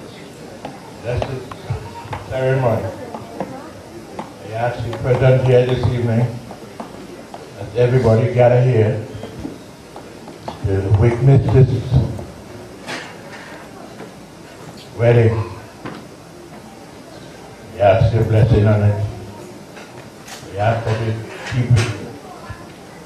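A man speaks loudly and with animation into a microphone, heard through loudspeakers in a large echoing hall.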